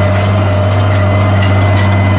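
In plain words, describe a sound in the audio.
A harrow rattles and clatters over dry soil.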